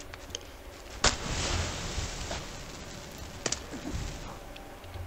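A flare ignites and hisses loudly.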